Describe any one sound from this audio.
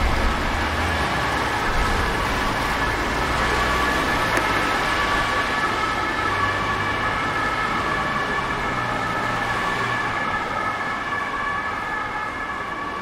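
Cars drive past on a wet road with hissing tyres.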